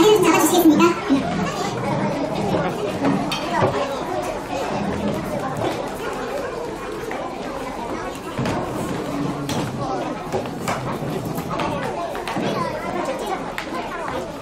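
A crowd of men and women chatters and murmurs nearby in a large echoing hall.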